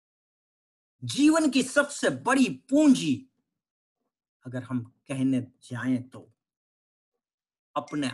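A middle-aged man speaks calmly over an online call, pausing between phrases.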